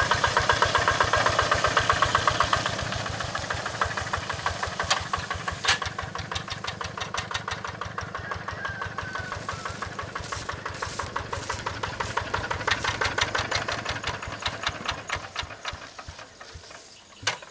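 A small diesel engine chugs steadily close by.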